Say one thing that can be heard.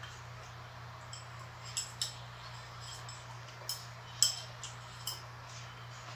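Chopsticks click against bowls.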